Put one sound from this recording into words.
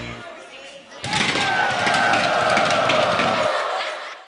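A lively crowd of young men and women cheers and chatters loudly.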